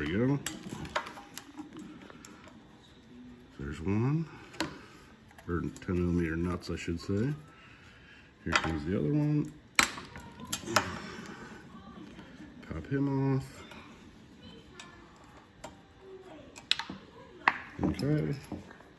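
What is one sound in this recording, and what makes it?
A screwdriver clicks and scrapes against metal parts.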